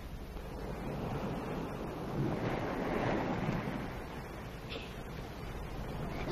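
Waves wash and break on a beach.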